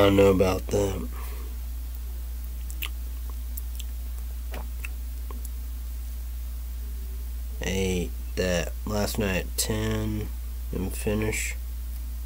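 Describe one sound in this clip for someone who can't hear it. A young man speaks casually, close to the microphone, in short bursts with pauses.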